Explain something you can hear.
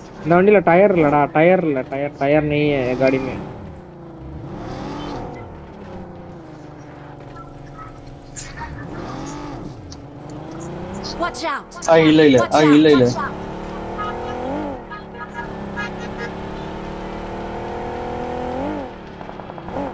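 A car engine hums, rising and falling as it revs.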